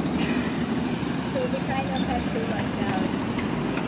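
A diesel utility truck drives past.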